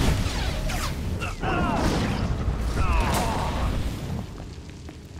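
Lightsabers clash and crackle in a fight.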